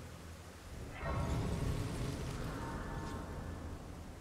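A shimmering chime swells and rings out.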